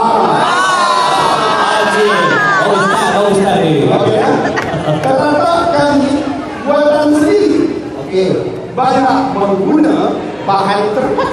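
An elderly man sings loudly into a microphone through a loudspeaker.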